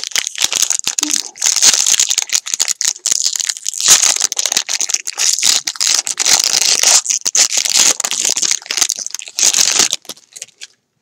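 A foil card pack wrapper crinkles and tears as hands rip it open.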